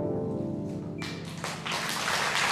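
Several plucked zithers ring out together and fade in a final chord.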